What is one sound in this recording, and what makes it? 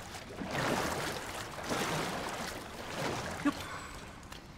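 Water splashes and sloshes in repeated bursts.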